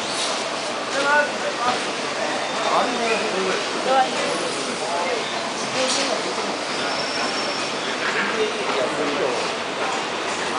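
Men talk nearby in casual voices.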